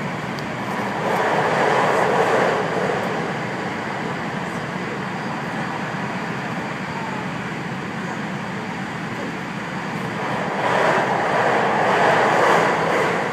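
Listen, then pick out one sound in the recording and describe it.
Wheels roar louder on the rails for a few seconds at a time.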